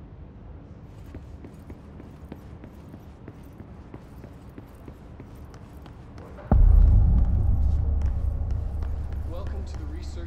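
Footsteps run quickly across a hard floor.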